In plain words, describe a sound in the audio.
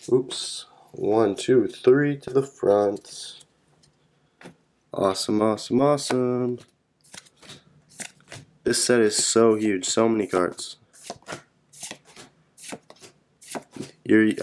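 Trading cards slide and rustle against each other in hands.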